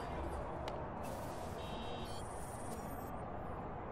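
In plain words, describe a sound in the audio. Short electronic chirps and beeps sound.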